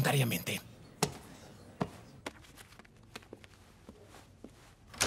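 Papers rustle and thump on a desk.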